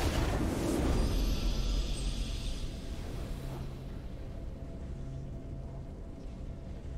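A triumphant fanfare swells and fades.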